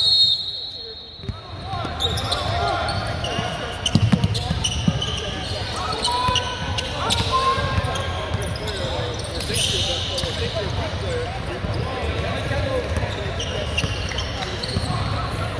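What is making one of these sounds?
A crowd of young players and spectators chatters and shouts in a large echoing gym.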